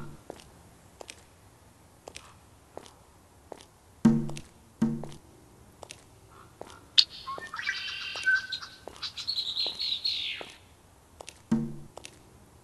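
A walrus's flippers thump softly on snow in a steady rhythm.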